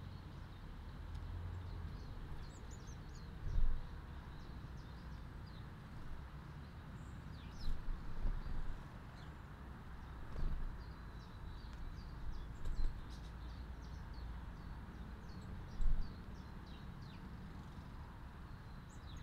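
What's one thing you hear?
Small birds chirp and twitter nearby outdoors.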